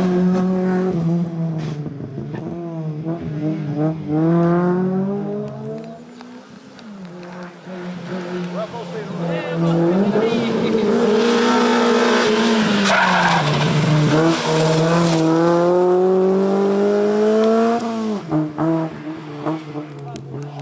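A race car engine revs hard and roars loudly as it speeds past.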